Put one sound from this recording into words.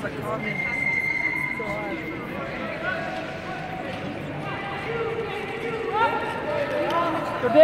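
Short track speed skates scrape and hiss across the ice.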